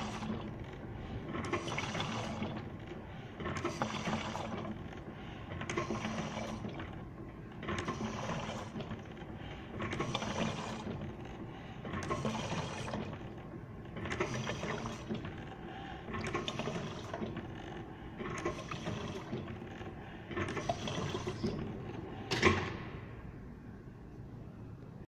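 Liquid pours into a plastic bottle in repeated bursts.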